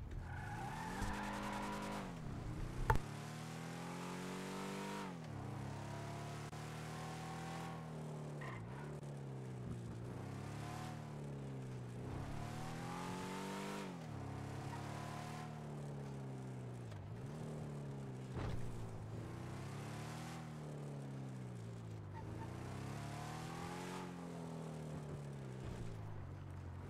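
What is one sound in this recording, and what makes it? A car engine revs up and down through the gears as the car speeds along.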